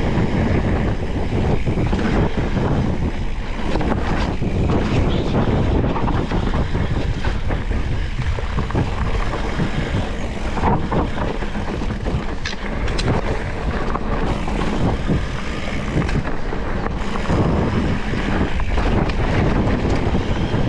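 A bike chain and frame rattle over bumps.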